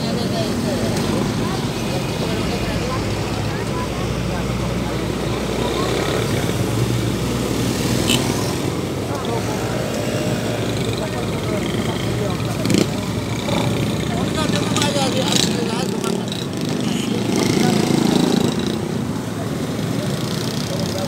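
Busy street traffic hums steadily outdoors.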